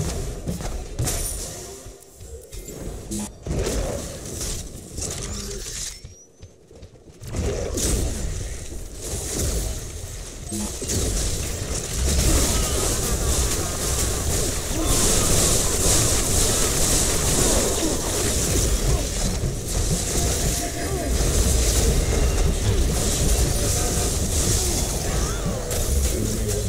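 Explosions and gunfire boom in a fast game battle.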